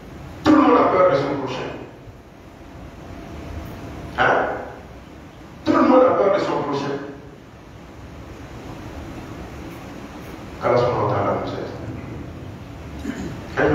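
A man preaches loudly and with emphasis through a microphone, in bursts, with echoing pauses.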